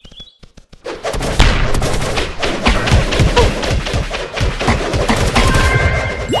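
Rapid blows and crackling bursts of a fight clatter loudly.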